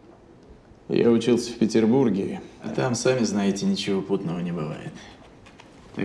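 A man speaks calmly and close by in a quiet room.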